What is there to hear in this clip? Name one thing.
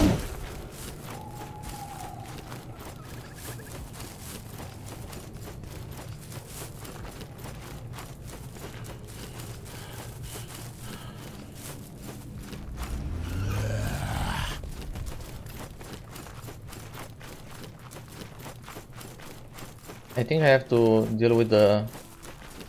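Footsteps tread softly over grass and dirt.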